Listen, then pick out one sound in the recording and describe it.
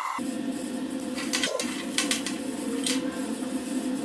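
A metal fitting scrapes and clicks as it is screwed together.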